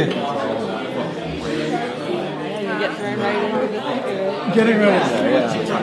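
A woman laughs nearby.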